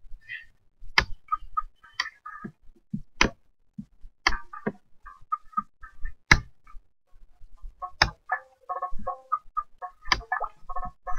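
A computer mouse clicks several times.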